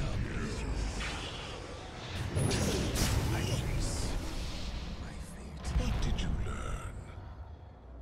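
Magic blasts and weapon hits crackle and clash in a fast fight.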